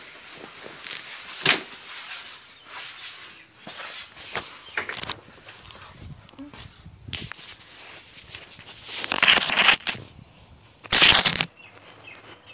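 Fabric and fingers rub and knock loudly against a handheld microphone.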